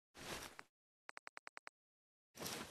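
Short electronic clicks tick rapidly in a row.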